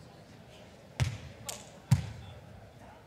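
A volleyball is struck hard with a hand, with thuds echoing in a large hall.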